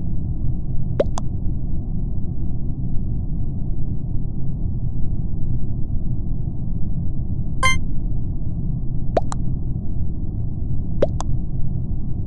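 Short electronic game pops sound a few times.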